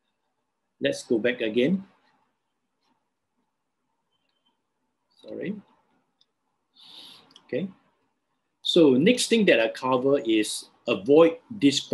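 An elderly man speaks calmly through an online call, in short bursts with pauses.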